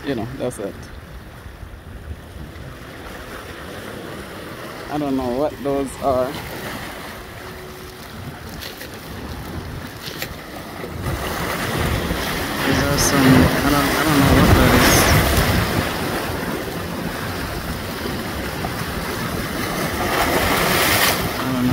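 Small waves wash and splash against rocks.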